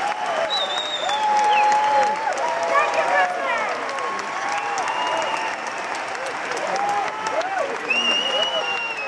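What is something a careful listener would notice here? Audience members cheer and whistle.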